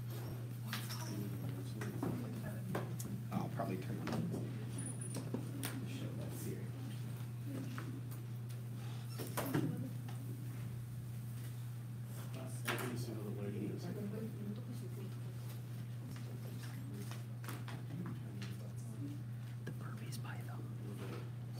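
A young woman speaks calmly to an audience.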